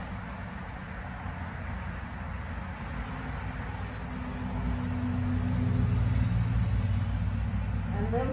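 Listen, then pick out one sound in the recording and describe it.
A paintbrush scrapes and swishes across wood.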